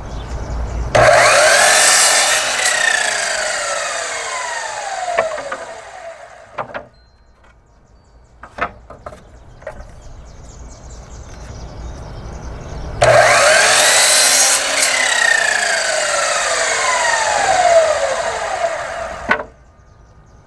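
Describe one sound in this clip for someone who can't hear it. An electric miter saw whines loudly as it spins up, cuts through wood and winds down.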